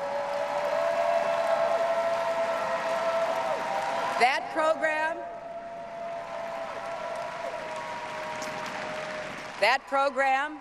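A large crowd cheers and claps in a big echoing hall.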